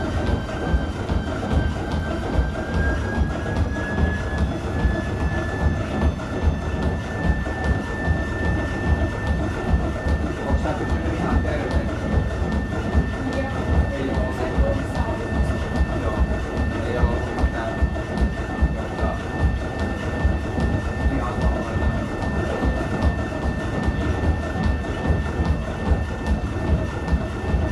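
Running footsteps thud rhythmically on a treadmill belt.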